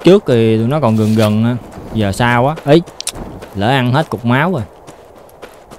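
A young man talks animatedly into a close microphone.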